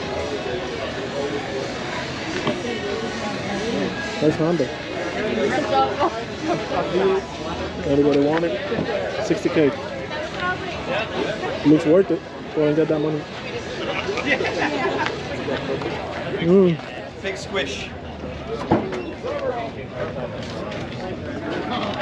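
Men and women chat and murmur in a crowd nearby, outdoors.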